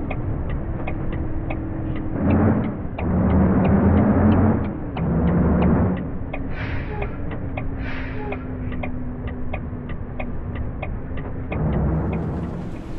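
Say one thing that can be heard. A bus engine hums steadily as it drives.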